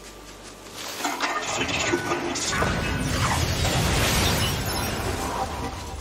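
Laser blasts crackle and hiss.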